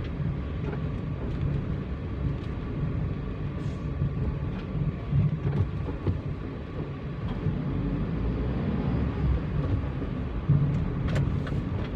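A car engine hums steadily while driving slowly through city traffic.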